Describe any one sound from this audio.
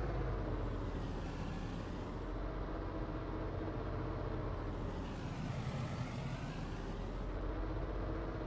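Tyres screech in skids on tarmac.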